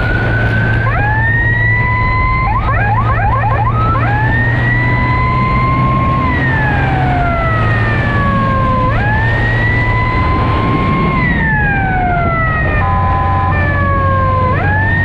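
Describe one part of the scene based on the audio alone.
A motorcycle engine revs up and drops in pitch as it shifts gears.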